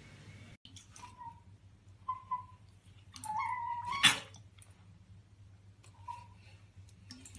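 An otter squeaks and chirps.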